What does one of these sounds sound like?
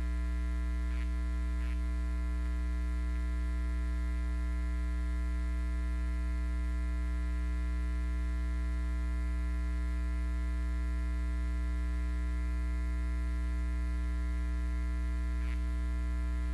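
Footsteps sound faintly now and then.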